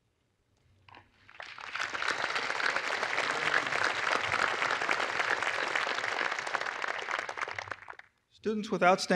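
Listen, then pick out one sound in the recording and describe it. A large crowd applauds outdoors.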